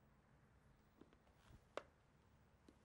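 A door opens with a soft click.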